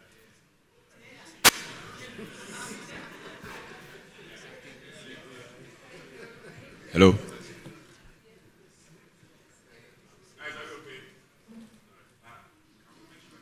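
A man speaks at a distance through a loudspeaker in a room with echo.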